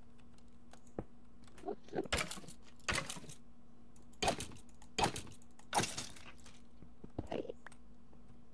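A pickaxe chips and breaks stone blocks in sharp bursts.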